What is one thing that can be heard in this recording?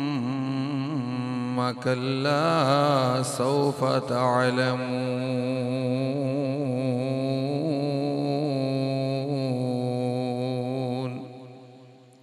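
A man chants in a long, melodic, drawn-out voice through a microphone with a ringing echo.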